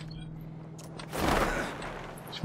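A parachute canopy flutters in rushing wind.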